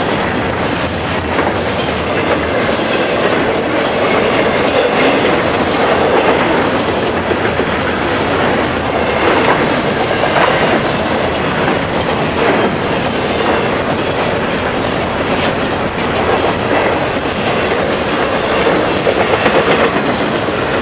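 Train wheels clack on the rails.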